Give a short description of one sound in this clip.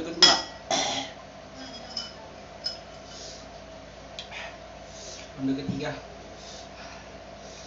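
Metal spoons clink against ceramic bowls.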